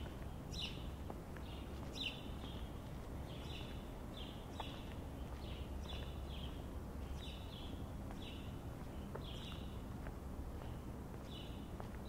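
Footsteps tap steadily on a paved street outdoors.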